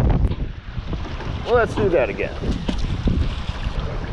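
An object splashes into the water.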